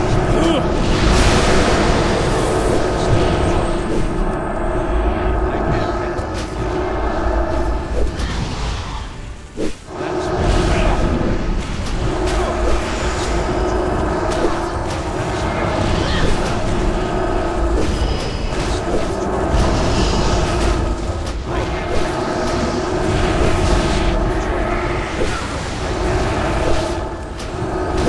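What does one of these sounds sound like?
Magic spells crackle and whoosh in quick bursts.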